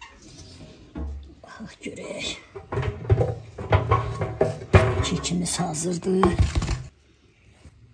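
A metal baking tray scrapes and clanks as it slides out of an oven.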